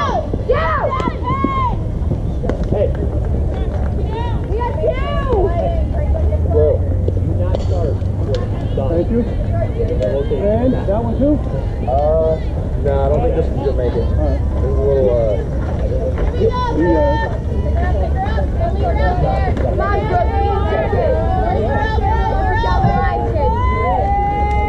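Wind rumbles steadily across an outdoor field.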